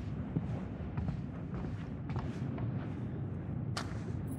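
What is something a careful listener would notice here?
Footsteps creak on wooden floorboards.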